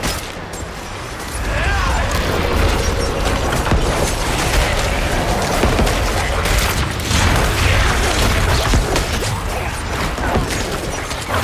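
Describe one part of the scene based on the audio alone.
Spell blasts and impacts crash and boom rapidly in a game battle.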